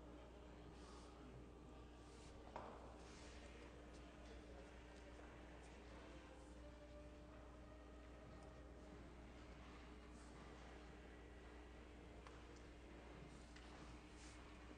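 A violin plays softly in an echoing hall.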